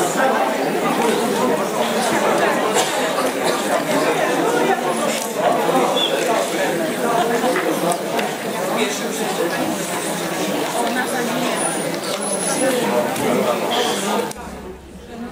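A large audience chatters in an echoing hall.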